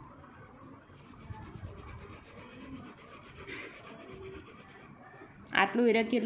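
A pen scratches along paper, drawing a line.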